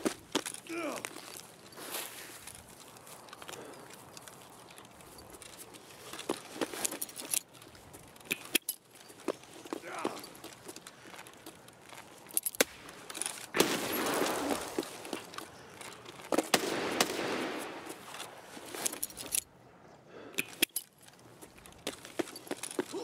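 Footsteps crunch and tap on paving stones at a steady walking pace.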